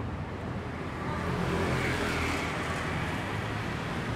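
A motorbike engine drones as it passes close by.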